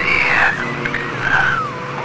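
Steam hisses loudly from a broken pipe.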